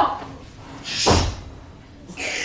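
A thud sounds as an actor stamps or strikes the floor.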